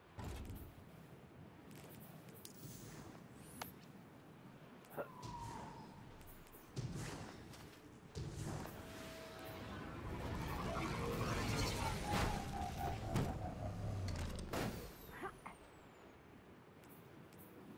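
A game's menu gives off soft clicks and whooshes.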